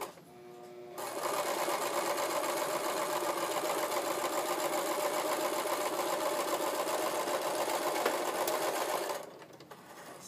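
A sewing machine whirs steadily as it stitches fabric.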